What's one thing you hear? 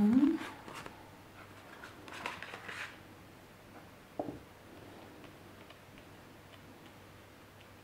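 Playing cards are shuffled and laid softly on a cloth.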